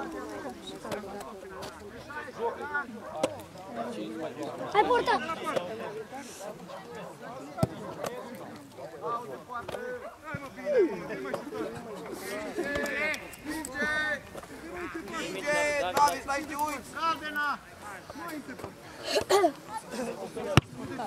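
Young men talk and shout close by, outdoors.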